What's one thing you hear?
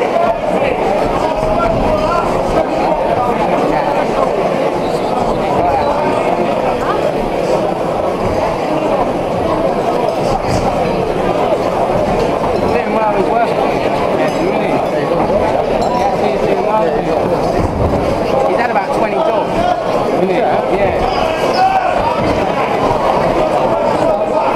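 A large crowd chatters steadily in an echoing hall.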